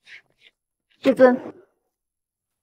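A young woman speaks firmly and close by.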